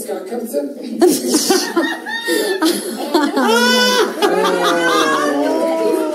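A young woman shouts excitedly close by.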